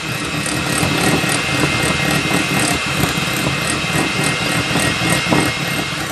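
An electric hand mixer whirs steadily, its beaters churning a thick mixture in a bowl.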